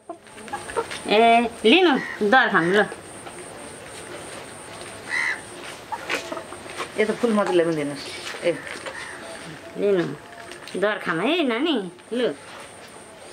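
A woman speaks nearby in short bursts.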